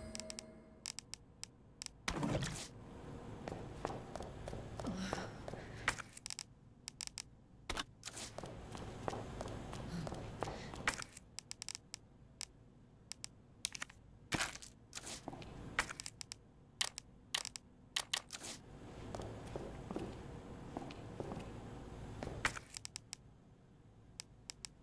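Short menu clicks tick quickly, many times.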